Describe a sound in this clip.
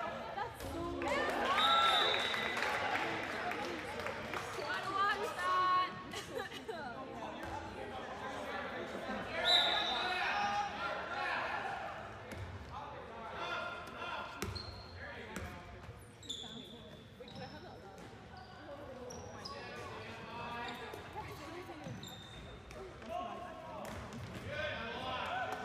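A ball thumps on a hard floor.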